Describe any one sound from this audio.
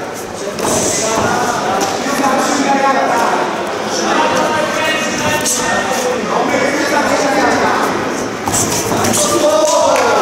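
Gloved punches thud against bodies.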